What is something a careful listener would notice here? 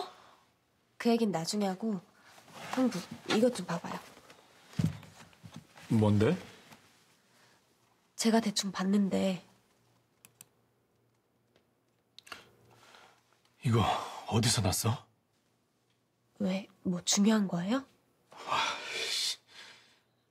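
A young woman talks with animation, close by.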